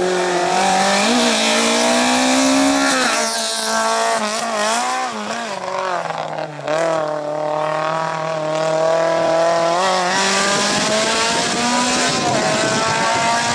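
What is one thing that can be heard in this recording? A small car's engine revs hard and shifts up and down as it races past.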